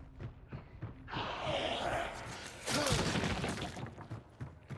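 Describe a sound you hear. A monster groans and snarls close by.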